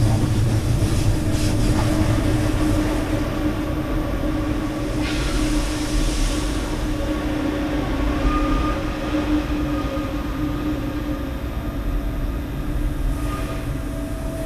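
Train wheels clatter over the track joints.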